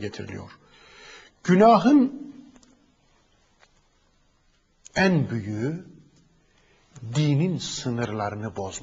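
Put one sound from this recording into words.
A man speaks with emphasis, close to a microphone, in bursts with pauses.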